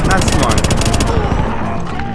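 Rapid automatic gunfire rattles close by.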